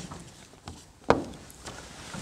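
A microphone knocks against a table.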